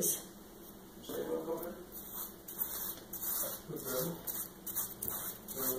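Plastic wrap crinkles and rustles as it is handled.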